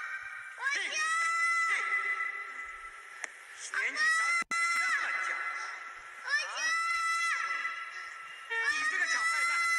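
A young girl screams and wails in distress, loud and close.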